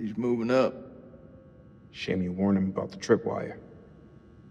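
A man speaks calmly in a low voice, close by.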